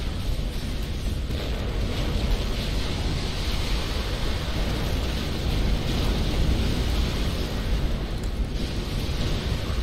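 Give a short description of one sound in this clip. Energy weapons fire in rapid bursts.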